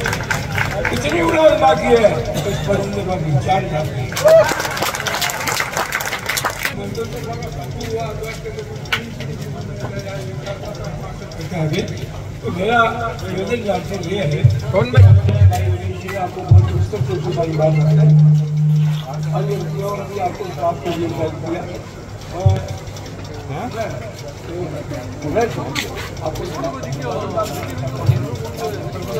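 An elderly man speaks steadily into a microphone over a loudspeaker.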